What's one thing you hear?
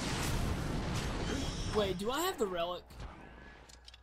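Loud game combat sounds clash and roar.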